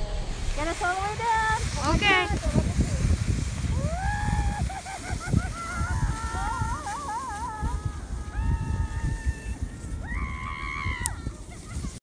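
A young person squeals and whoops with excitement.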